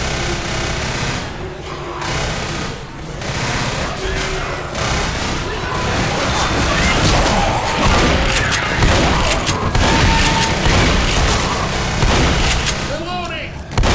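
A horde of zombies snarls and groans close by.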